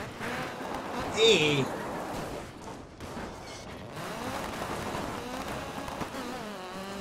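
Tyres skid and crunch on gravel.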